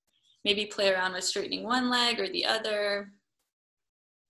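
A young woman speaks calmly and close to the microphone.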